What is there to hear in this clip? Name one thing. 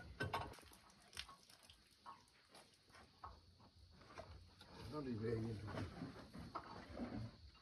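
Elephants rustle fruit loose from a truck's load with their trunks.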